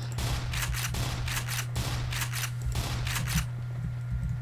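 A shotgun fires several loud blasts in quick succession.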